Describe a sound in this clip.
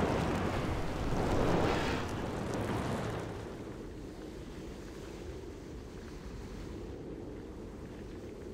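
Lava rumbles low and steady in the background.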